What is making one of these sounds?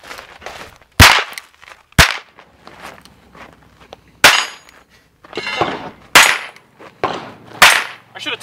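Gunshots crack loudly outdoors, one at a time, with a short echo after each.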